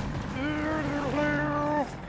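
A helicopter flies overhead.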